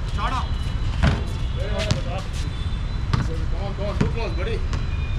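A basketball bounces on a hard outdoor court.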